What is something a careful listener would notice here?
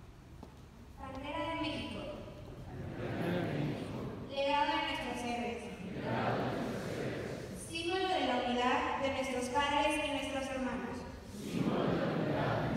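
A large crowd of young people sings together in unison in an echoing courtyard.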